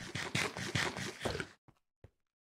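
Stone blocks crumble with quick crunching thuds.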